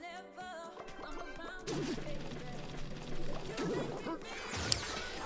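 Cheerful electronic game music plays.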